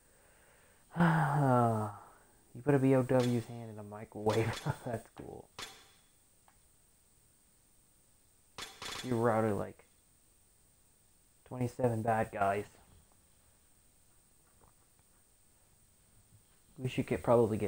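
A young man talks calmly into a nearby microphone, in short bursts.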